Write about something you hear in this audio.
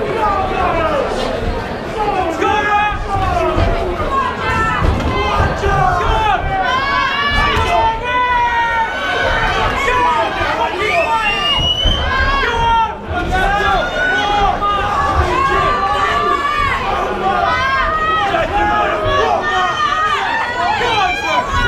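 A crowd of men and women shouts and cheers loudly in an echoing hall.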